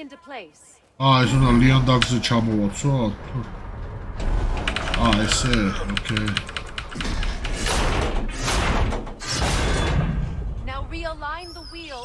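A heavy metal wheel grinds and rumbles as it turns.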